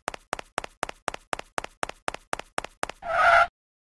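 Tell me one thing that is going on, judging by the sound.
Quick, light cartoon footsteps patter in an even rhythm.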